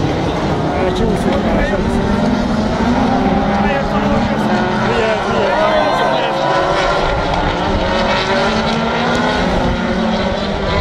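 A crowd chatters nearby outdoors.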